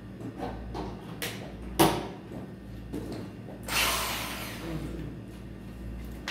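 Plastic parts of a power drill knock and clatter as they are handled.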